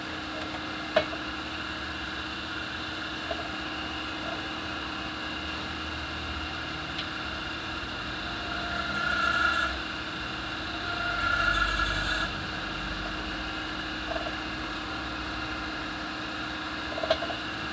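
Metal parts clink and knock together.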